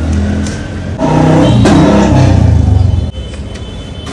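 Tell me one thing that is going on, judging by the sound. A cash machine whirs as it counts and pushes out banknotes.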